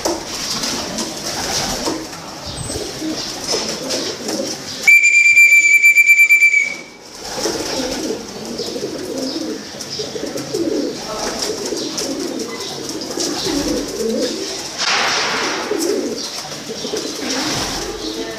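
Pigeons coo softly and steadily nearby.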